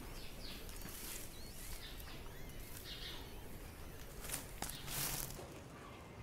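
Straw rustles and scrapes as it is shoveled.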